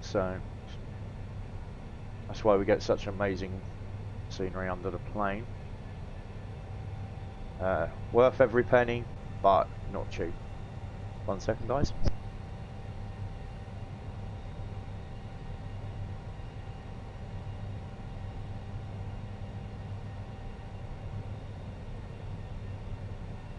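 A jet airliner's engines drone steadily in flight.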